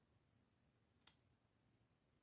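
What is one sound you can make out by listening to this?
Nail clippers snip once with a sharp click.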